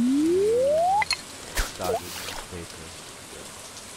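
A cast line plops into water.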